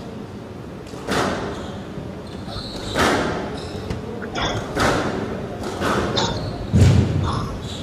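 Squash rackets strike a ball, and the hits echo around a court.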